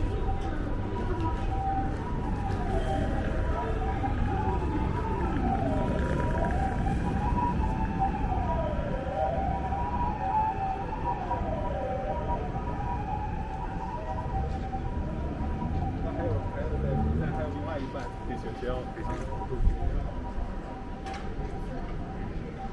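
Footsteps walk steadily on pavement.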